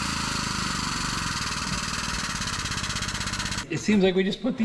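A hydraulic pump chugs rapidly and loudly.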